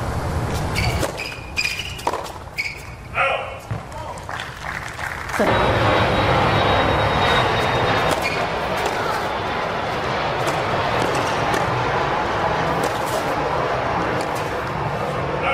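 A tennis ball is struck with sharp pops of a racket.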